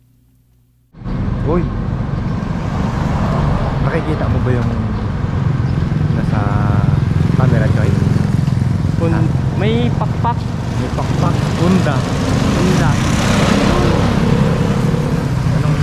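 Traffic rumbles along a street outdoors.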